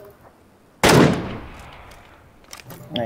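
A rifle fires a loud shot that echoes away.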